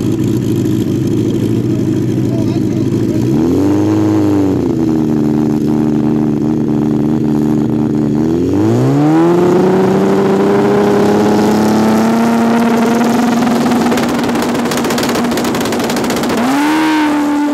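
An inline-four drag racing motorcycle revs hard on the start line.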